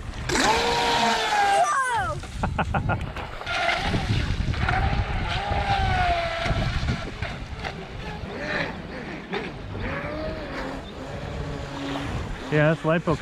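Water splashes and sprays behind a speeding toy boat.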